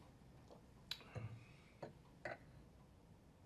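Wine glasses knock softly against a wooden table.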